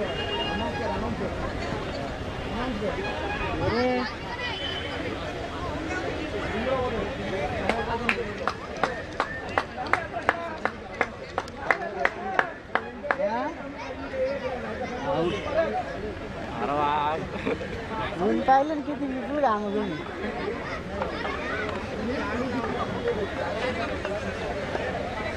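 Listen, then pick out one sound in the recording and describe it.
Young women talk and call out at a distance outdoors.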